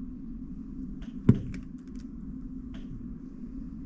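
Plastic cube pieces click and clack as a puzzle cube is turned by hand.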